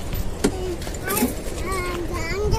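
A young girl speaks in a high voice close by.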